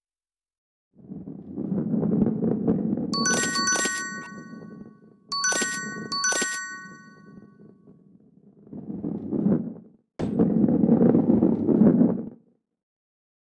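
A ball rolls with a low rumble.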